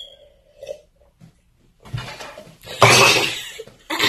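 A cup knocks down onto a plate.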